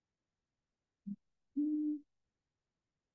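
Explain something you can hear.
A woman speaks briefly and calmly through an online call.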